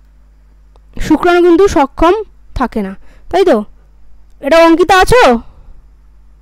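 A young woman speaks with animation through an online call.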